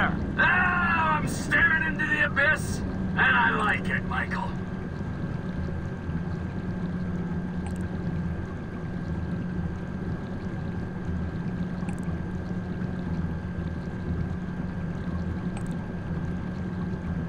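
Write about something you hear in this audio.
A small submarine's motor hums steadily underwater.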